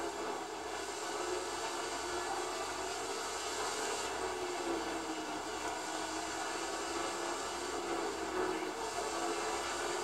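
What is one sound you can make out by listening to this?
A race car engine roars steadily at high speed.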